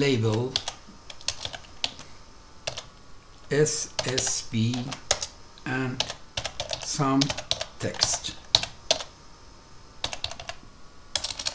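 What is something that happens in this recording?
Keyboard keys click in quick bursts.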